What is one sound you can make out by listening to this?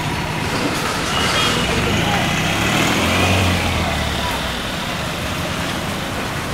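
A vehicle engine hums nearby as a van drives past.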